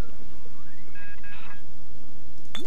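A short chime sounds as items are picked up from a chest.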